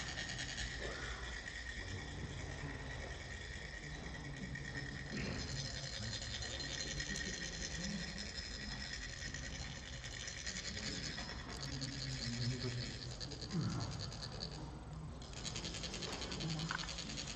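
Metal funnels rasp rapidly as they are rubbed together.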